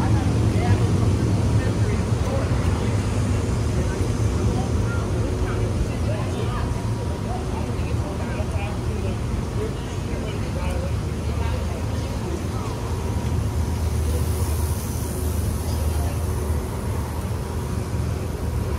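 People talk in the distance.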